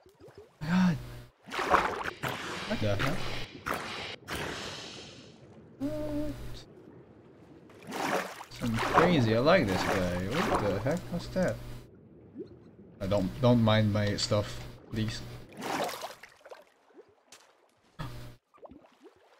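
Water splashes as something swims through it.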